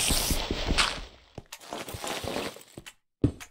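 Dirt crunches in quick, repeated thumps as blocks are dug.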